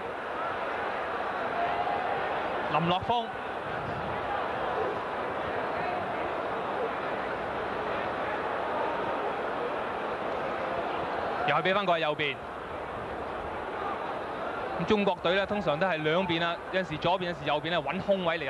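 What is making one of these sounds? A large crowd murmurs steadily in a stadium, outdoors.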